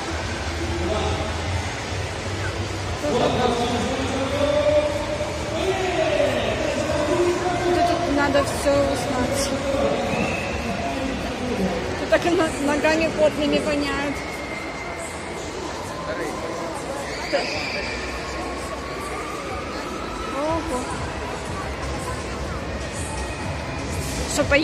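A crowd chatters and murmurs all around in a large echoing hall.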